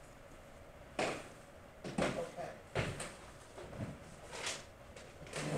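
Papers rustle and thump on a table.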